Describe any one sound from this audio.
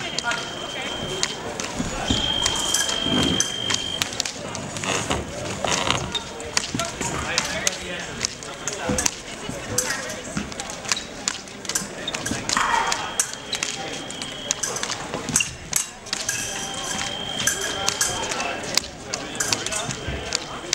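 Shoes squeak and thump on a hard floor in a large echoing hall.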